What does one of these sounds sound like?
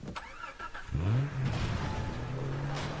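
A car engine revs up and then runs with a steady hum.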